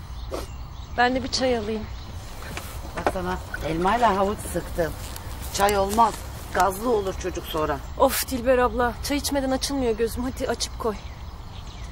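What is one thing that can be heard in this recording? A young woman speaks with animation.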